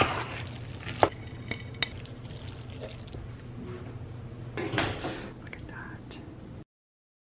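A spoon clinks against the rim of a pot.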